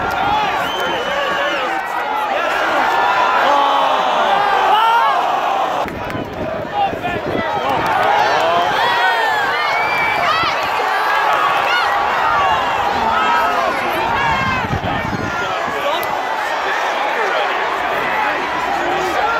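A large crowd cheers and shouts loudly in an open stadium.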